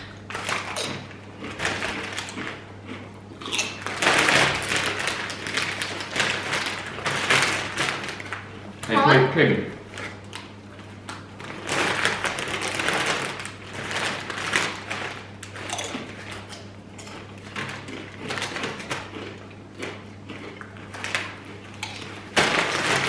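Plastic chip bags crinkle as hands reach into them.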